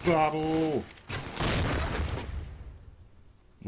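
Electronic game combat sounds crackle and burst.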